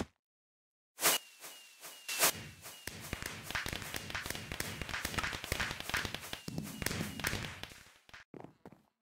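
Fireworks burst and crackle overhead.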